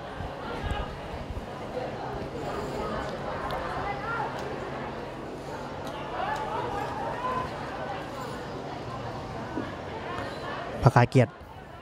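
A small crowd murmurs outdoors.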